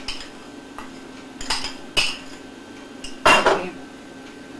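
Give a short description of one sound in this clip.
A spoon scrapes against a bowl.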